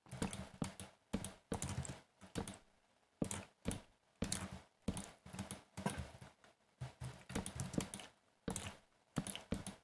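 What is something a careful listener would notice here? Wooden fence pieces are placed with short, soft knocks.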